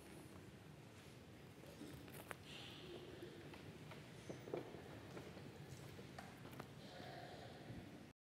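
Footsteps walk away across a stone floor.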